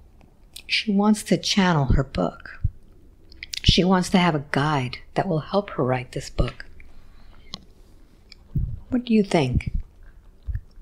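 A woman speaks softly and slowly, close to a clip-on microphone.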